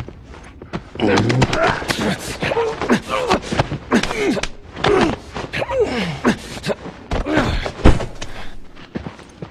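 Two men scuffle and grapple on a carpeted floor.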